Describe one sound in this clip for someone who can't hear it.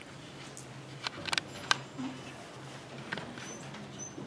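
Audience members shift and rustle in their seats.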